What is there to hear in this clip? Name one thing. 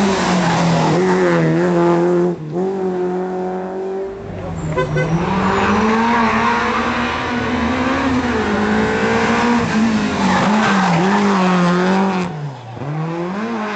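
A rally car engine roars and revs hard, rising and falling in pitch.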